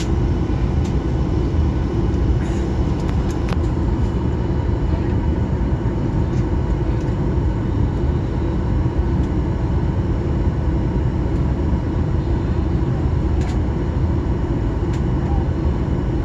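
A plane's wheels rumble over the runway.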